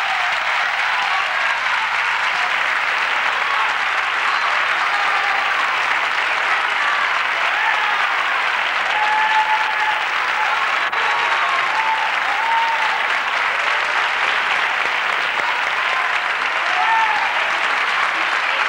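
A large audience applauds steadily in a big hall.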